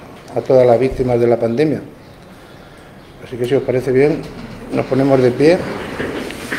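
A man speaks calmly into a microphone in an echoing room.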